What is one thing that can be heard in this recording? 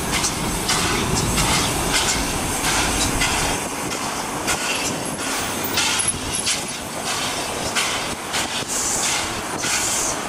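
A steam locomotive chuffs rhythmically nearby.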